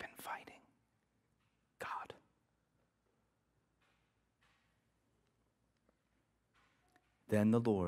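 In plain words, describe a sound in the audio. A man speaks calmly into a microphone in a large room, with pauses between phrases.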